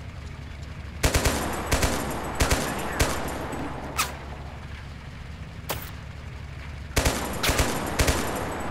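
A heavy gun fires single loud shots, each one echoing.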